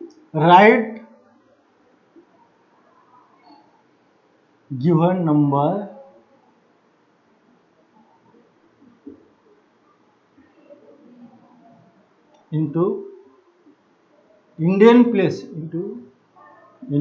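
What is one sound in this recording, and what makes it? A middle-aged man speaks calmly in short phrases with long pauses.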